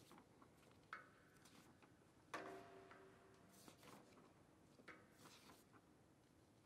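A violin sounds a few short notes that ring out in a large echoing hall.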